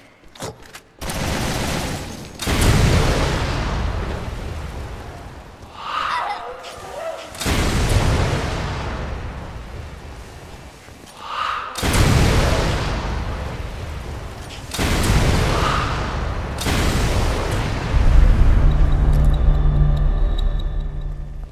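Loud explosions boom and rumble away, one after another.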